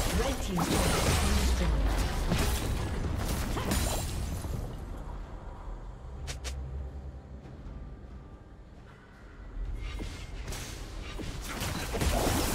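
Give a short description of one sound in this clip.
Magic spells burst and crackle in a fantasy battle.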